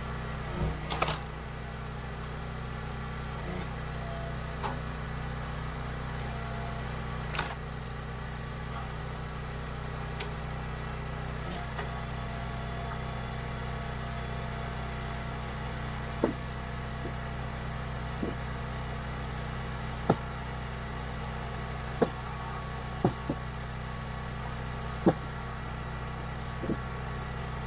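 Split logs knock and thud onto a metal table.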